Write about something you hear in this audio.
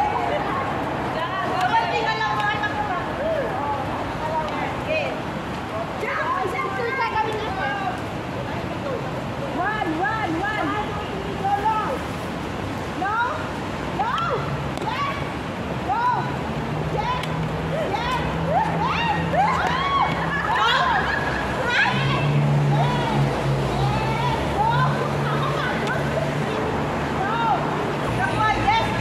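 Several young women chatter and laugh with animation close by, outdoors.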